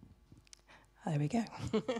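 A young woman speaks brightly into a microphone.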